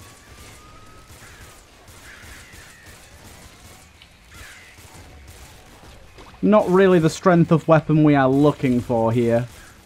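Video game guns fire in quick, faint bursts.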